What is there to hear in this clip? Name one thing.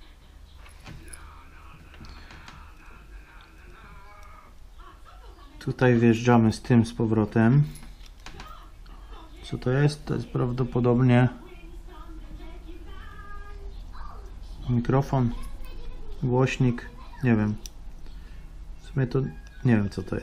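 A small screwdriver clicks and scrapes faintly against metal parts.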